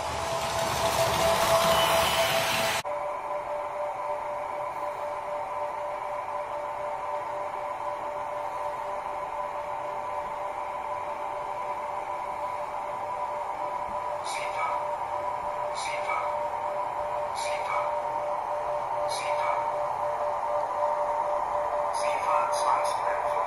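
A model train whirs past quickly, then whirs back in and grows louder.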